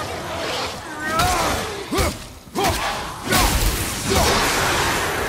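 Heavy blows thud and clang as an axe strikes in a fight.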